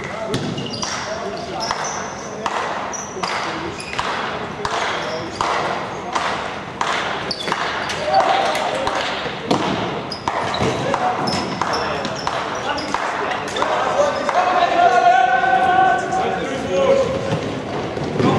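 Sticks click against a ball.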